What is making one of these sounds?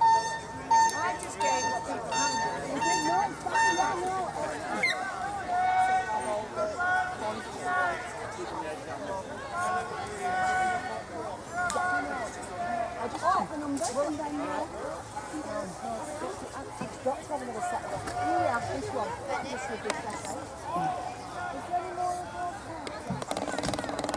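Men and women chat nearby outdoors.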